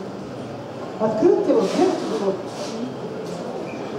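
A woman speaks with animation in an echoing hall.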